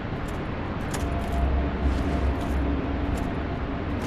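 Metal armour clanks as a knight moves.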